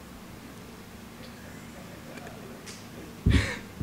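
A young man laughs into a microphone.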